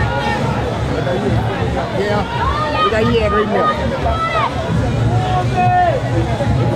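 A lively crowd cheers and chatters outdoors.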